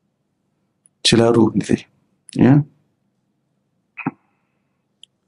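A man speaks calmly into a microphone in short phrases.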